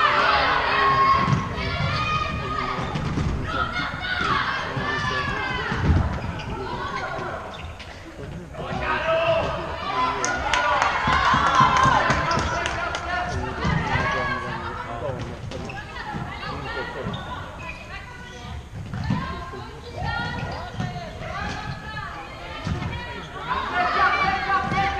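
Sports shoes squeak on a hard court in a large echoing hall.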